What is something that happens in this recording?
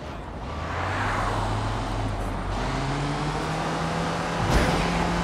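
A van engine hums steadily and shifts up in pitch as it drives.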